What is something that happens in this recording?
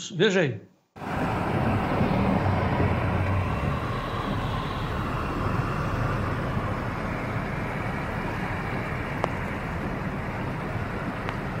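Muddy floodwater rushes and churns over the ground.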